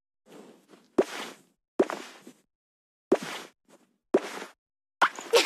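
Short playful game sound effects pop and chime several times.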